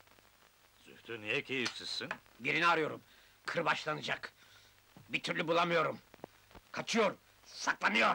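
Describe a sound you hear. A middle-aged man speaks loudly and with animation, close by.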